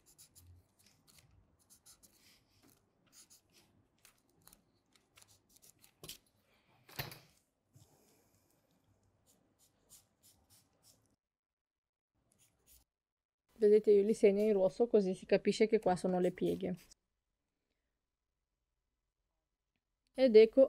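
A marker scratches on paper.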